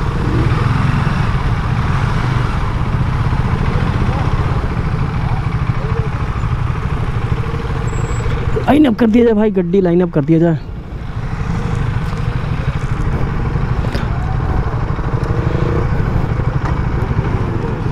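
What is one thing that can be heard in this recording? Motorcycle engines idle with a steady low rumble nearby.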